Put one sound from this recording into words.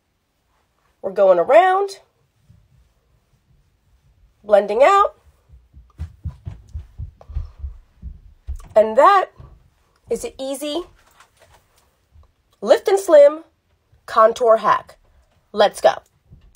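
A young woman speaks close to the microphone with animation, in short bursts.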